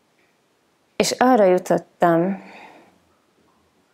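A woman chants two short, drawn-out tones close to a microphone.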